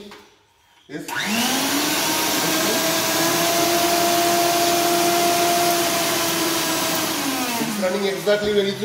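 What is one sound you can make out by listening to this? A small blender motor whirs loudly at a steady pitch, then winds down.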